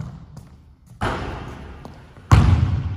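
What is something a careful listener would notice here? A basketball thuds against a backboard.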